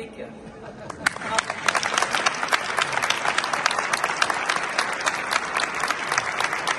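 A group of people applauds loudly.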